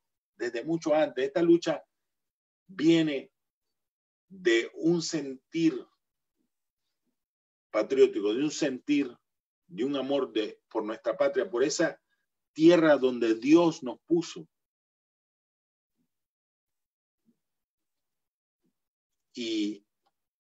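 A middle-aged man speaks with feeling in short bursts, heard through an online call.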